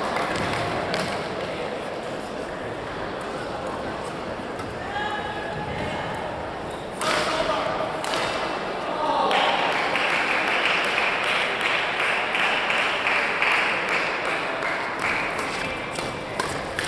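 A racket strikes a shuttlecock with sharp pops.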